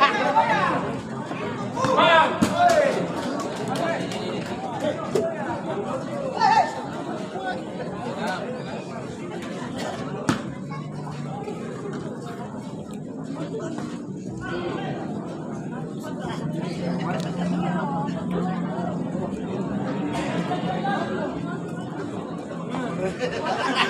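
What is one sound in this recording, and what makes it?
A crowd of spectators chatters and shouts in the background.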